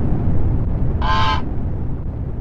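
A goose honks once.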